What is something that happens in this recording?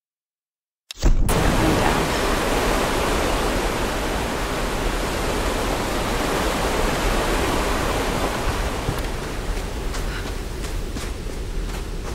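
Water rushes and roars from a nearby waterfall.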